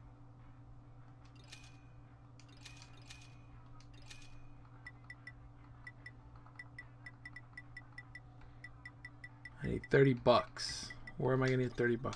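Menu clicks blip softly in a game.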